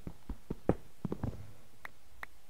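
A stone block crumbles and breaks.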